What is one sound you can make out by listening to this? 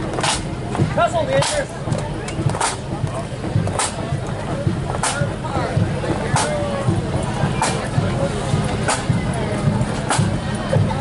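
A bass drum beats in a slow, steady march rhythm close by.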